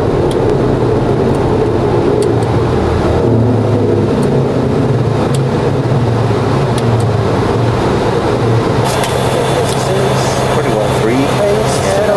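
Aircraft engines drone steadily from inside a cockpit.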